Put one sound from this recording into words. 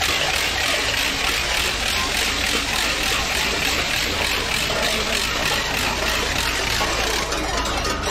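Cowbells clang steadily from a passing parade outdoors.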